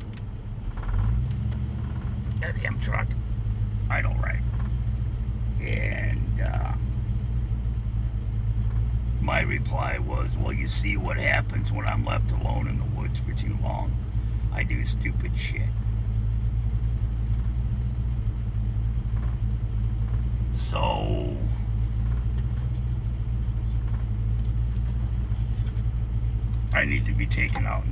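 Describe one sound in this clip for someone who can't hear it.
A car engine hums steadily with road rumble from inside the vehicle.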